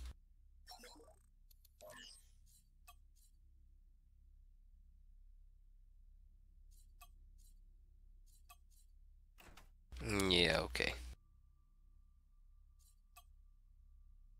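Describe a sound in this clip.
Short electronic clicks and blips sound as menus open and close.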